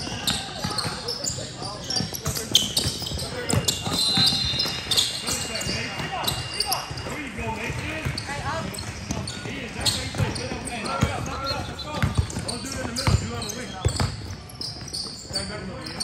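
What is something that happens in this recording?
Teenage boys shout to each other during play.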